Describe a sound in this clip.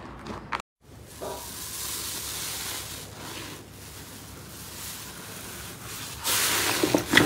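Fluffy slime rustles softly under a stroking hand.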